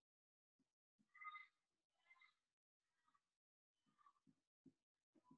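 A marker squeaks across a whiteboard in short strokes.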